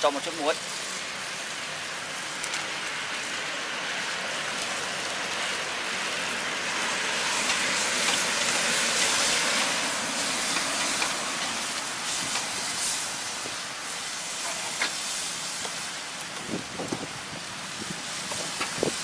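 Food sizzles and hisses in a hot pot.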